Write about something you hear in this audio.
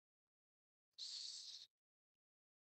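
A marker squeaks on a board.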